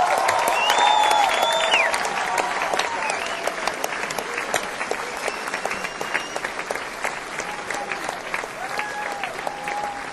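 A man sings into a microphone live on stage.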